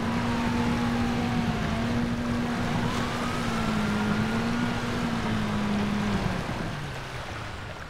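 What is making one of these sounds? A submarine engine hums steadily while moving fast.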